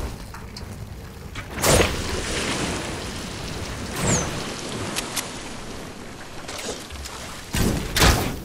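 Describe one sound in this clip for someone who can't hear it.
A bow string twangs as an arrow is shot.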